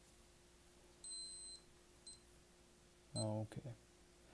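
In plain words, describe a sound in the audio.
An electronic meter beeps with short high tones.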